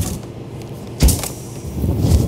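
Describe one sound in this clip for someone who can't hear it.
A freezer lid thuds shut.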